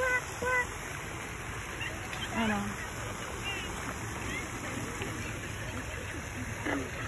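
A light wind rustles through tall reeds.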